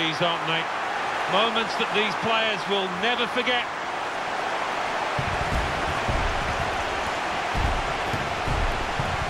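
A large crowd cheers loudly in a big stadium.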